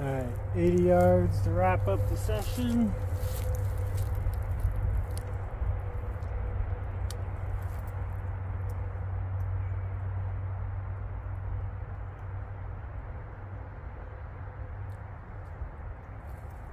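Wind rumbles low and steady outdoors.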